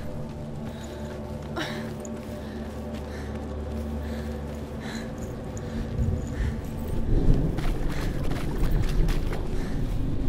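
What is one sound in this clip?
Footsteps crunch steadily over sand and stone.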